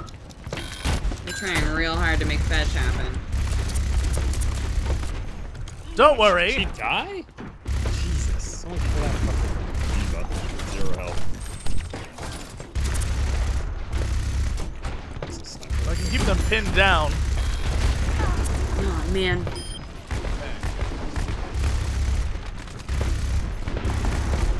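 A heavy gun fires in long rapid bursts.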